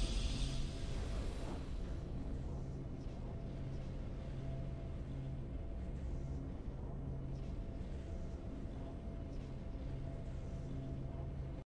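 A soft victory tune plays quietly.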